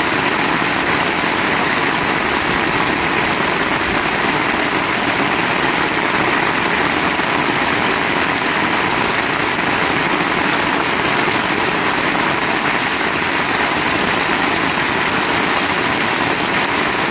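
Heavy rain pours down steadily outdoors.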